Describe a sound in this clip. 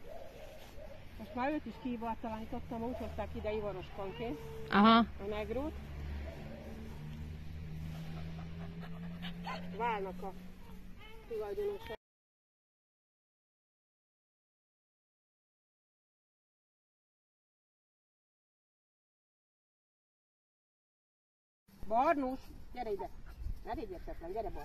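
A woman talks with animation to a dog close by.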